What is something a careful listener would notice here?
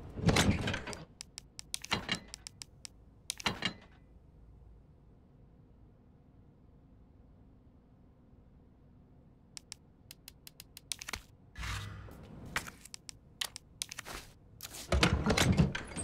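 Short menu clicks and beeps sound in quick succession.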